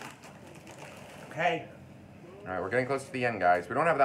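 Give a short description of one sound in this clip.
A bag of chips rustles and crinkles.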